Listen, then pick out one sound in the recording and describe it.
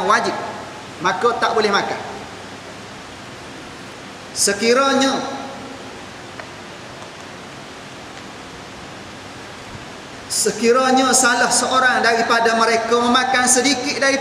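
A man speaks calmly into a clip-on microphone, with pauses between phrases.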